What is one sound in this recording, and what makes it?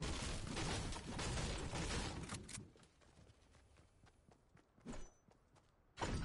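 Footsteps patter quickly across hard ground.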